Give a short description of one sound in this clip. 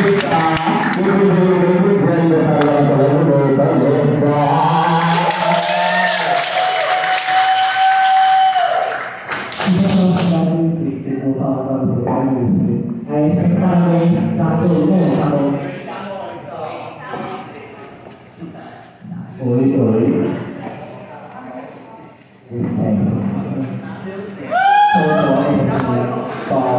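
A crowd chatters and cheers loudly in a large echoing hall.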